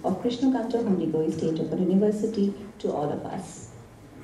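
A woman speaks calmly into a microphone over a loudspeaker in a large room.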